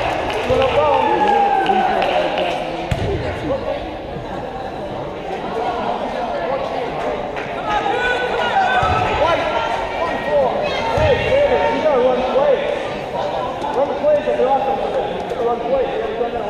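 A man shouts loudly from the sideline.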